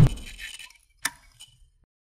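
A mouse button clicks once.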